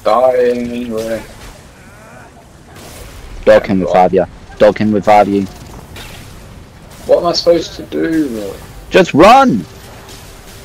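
A blade slashes and strikes a monster.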